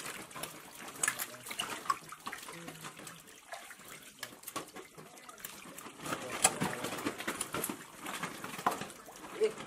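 Many fish splash and thrash in shallow water close by.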